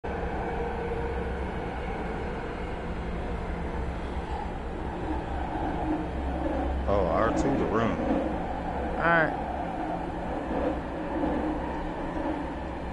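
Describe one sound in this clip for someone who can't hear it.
A train car rumbles steadily along the tracks.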